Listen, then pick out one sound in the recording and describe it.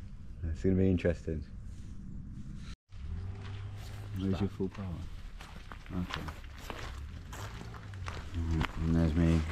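A young man speaks casually, close to the microphone.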